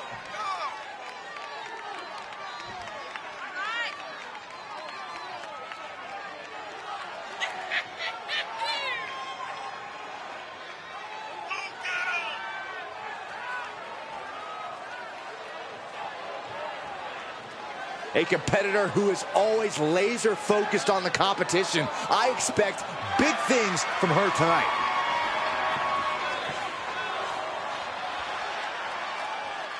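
A crowd cheers in a large arena.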